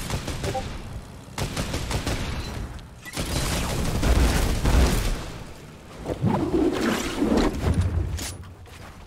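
A small propeller plane engine drones loudly.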